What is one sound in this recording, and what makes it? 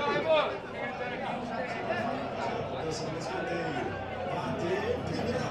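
A crowd of men chatters nearby.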